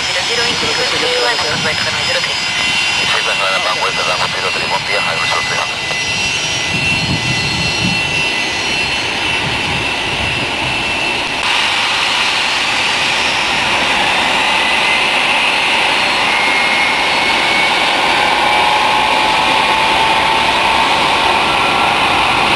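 A jet engine whines and roars steadily outdoors, growing louder.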